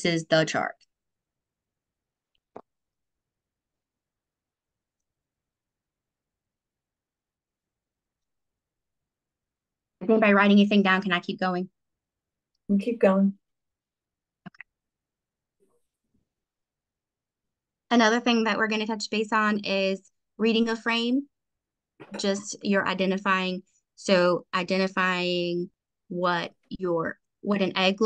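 A woman explains calmly over an online call, in bursts with pauses.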